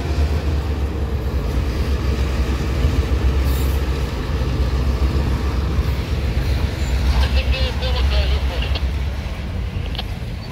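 Diesel locomotive engines idle with a deep, steady rumble.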